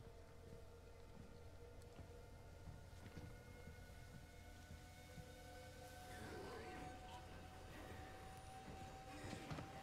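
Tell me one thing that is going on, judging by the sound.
A steady low hum drones in the background.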